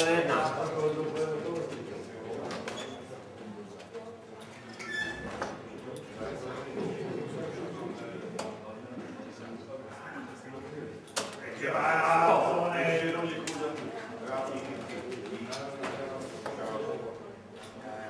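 Darts thud into a dartboard one after another.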